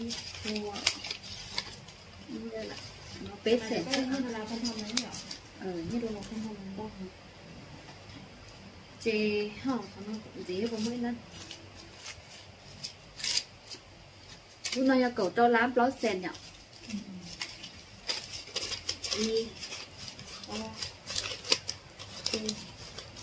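Paper banknotes rustle and flick as they are counted.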